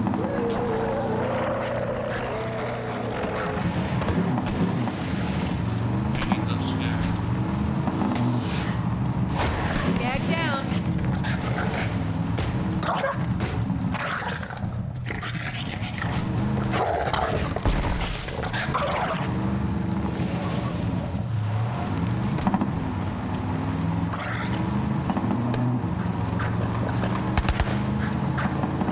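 A buggy engine roars and revs up and down.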